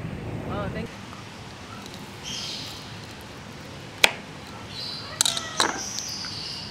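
A knife cuts into a fruit's tough skin.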